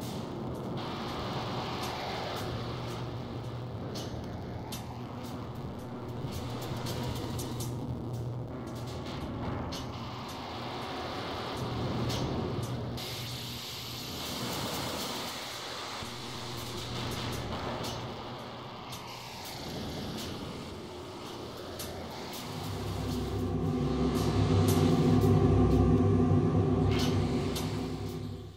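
Sharp electronic clicks tick irregularly.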